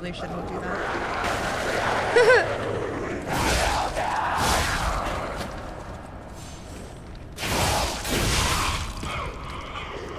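Weapons clash and slash loudly.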